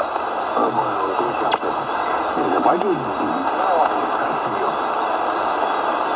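Garbled, warbling speech comes faintly through a radio loudspeaker.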